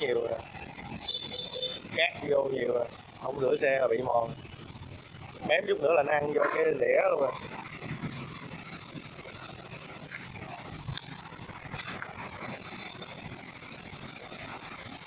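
Small metal tools and parts clink and tap.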